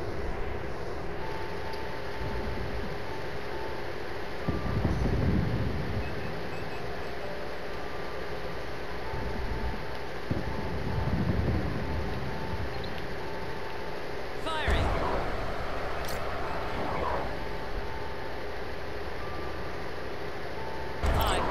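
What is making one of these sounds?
A low electronic hum drones steadily throughout.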